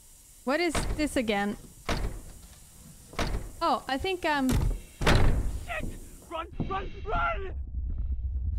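A young woman speaks excitedly, close to a microphone.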